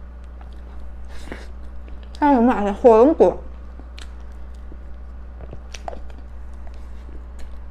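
A young woman chews soft cream cake close to a microphone.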